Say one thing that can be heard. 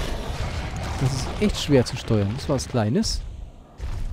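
A creature snarls and shrieks close by.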